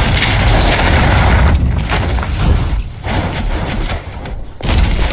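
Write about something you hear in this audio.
Concrete slabs crash and crumble into rubble with loud, rumbling booms.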